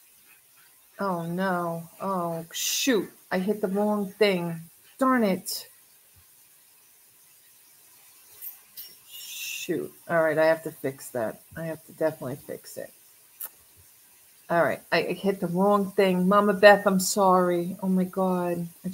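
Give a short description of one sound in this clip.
A middle-aged woman talks with animation close to a microphone, pausing between phrases.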